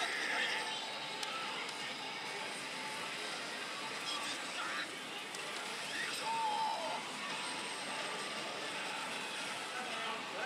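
A slot machine plays loud electronic music and sound effects.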